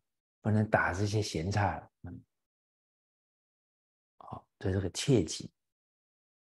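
An elderly man speaks warmly and calmly into a close microphone.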